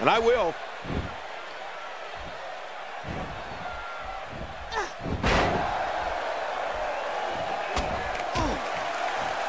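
Bodies thud onto a wrestling mat.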